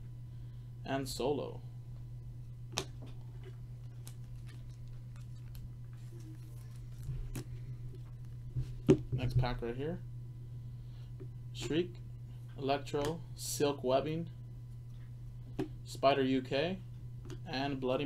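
Trading cards rustle and flick between fingers.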